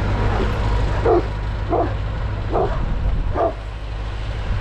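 A dog barks several times nearby.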